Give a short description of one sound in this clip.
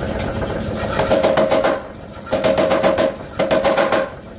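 A power hammer pounds rapidly in bursts with a ringing metallic clang.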